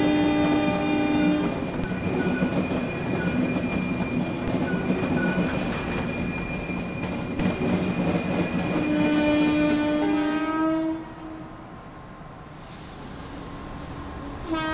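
A diesel engine hums steadily as a train approaches.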